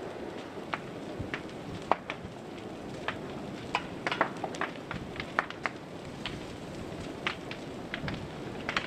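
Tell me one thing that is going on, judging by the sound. Burning wood crackles and pops sharply.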